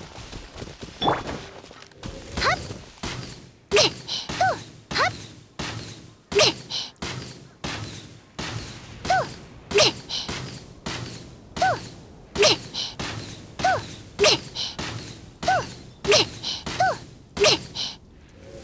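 A bow twangs as arrows are shot again and again, each with a sharp whoosh.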